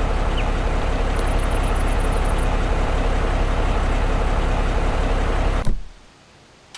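A heavy truck engine rumbles, then cuts off.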